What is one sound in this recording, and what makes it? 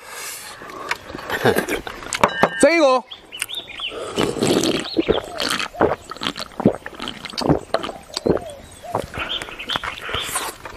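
A young man chews and slurps food noisily close by.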